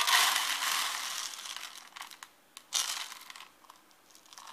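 Small dry granules pour and rattle out of a container.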